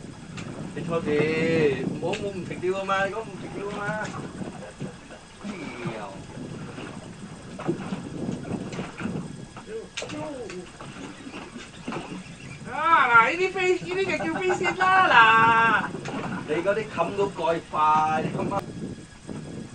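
Men shout and talk loudly nearby, outdoors.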